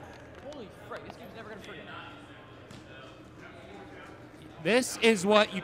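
Young men call out and talk in a large echoing indoor hall.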